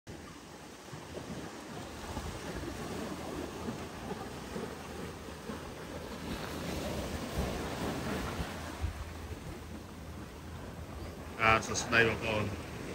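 Waves wash and break against rocks on a shore.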